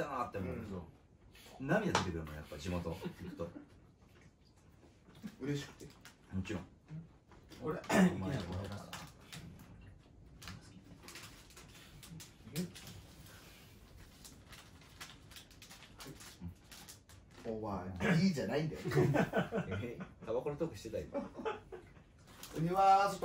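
Young men talk casually nearby, indoors.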